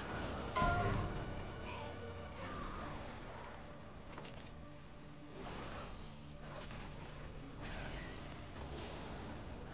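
Spell effects whoosh and crackle in a video game.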